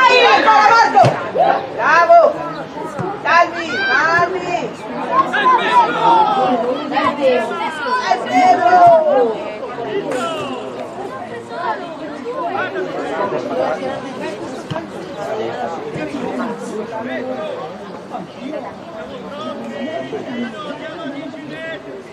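Children shout and call to each other outdoors.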